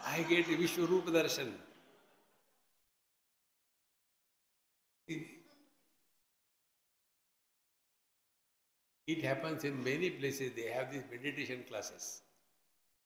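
An elderly man speaks with animation into a microphone, with pauses.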